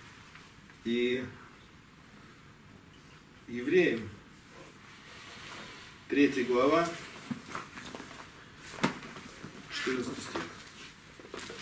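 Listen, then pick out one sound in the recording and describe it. A man speaks in short bursts through a microphone, in a room with some echo.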